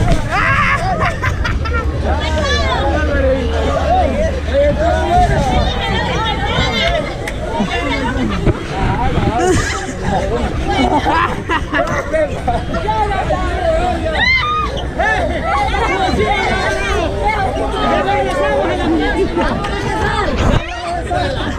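A large crowd chatters and shouts loudly all around.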